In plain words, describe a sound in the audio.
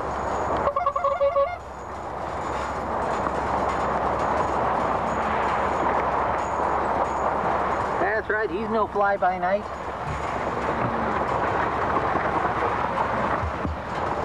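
A small vehicle's motor rumbles steadily as it rolls over rough ground.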